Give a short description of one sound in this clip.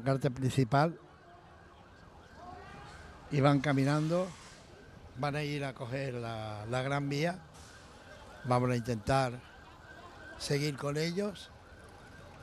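A crowd of protesters chants loudly in unison outdoors.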